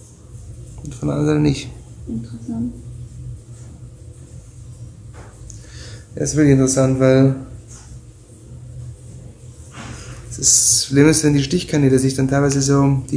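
A man speaks calmly close by, in short bursts.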